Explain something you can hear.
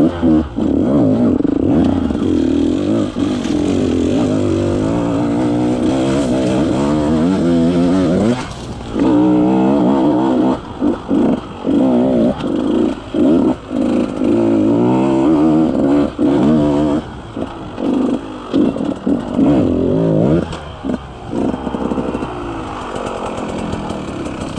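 A dirt bike engine revs up and down loudly close by.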